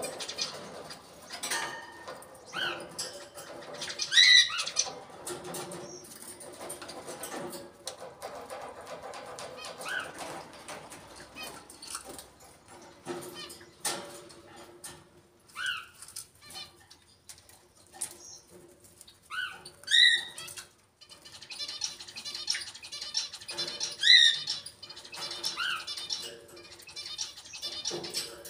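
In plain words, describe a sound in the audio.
A parrot's claws and beak clink on metal cage bars.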